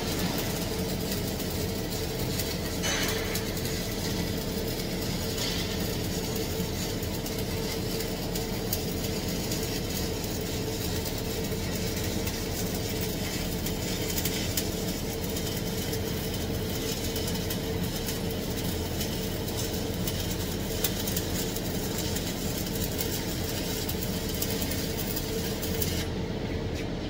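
An electric welding arc crackles and sizzles steadily.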